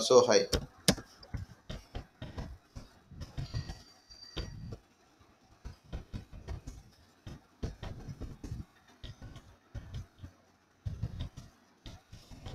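Keyboard keys click in quick, uneven taps as someone types.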